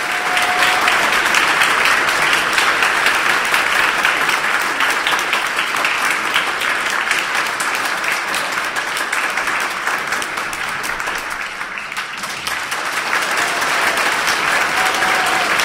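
A symphony orchestra plays loudly in a large echoing hall.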